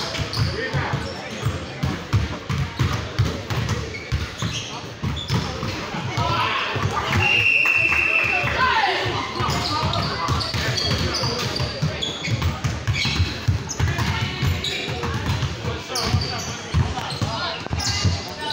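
Young people shout and chatter in a large echoing hall.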